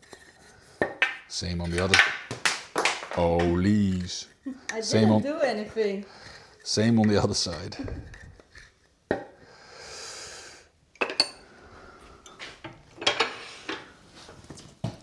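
Wood knocks against a metal tool rest.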